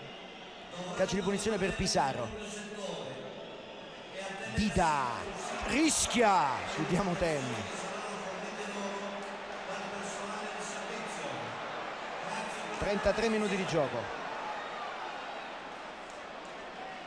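A large stadium crowd roars and chants outdoors.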